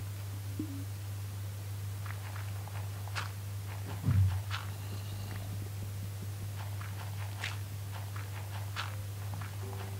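Blocks of stone crack and crumble as they are dug out with a pickaxe.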